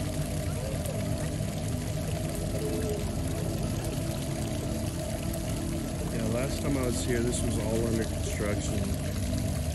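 A small stream of water trickles and splashes steadily.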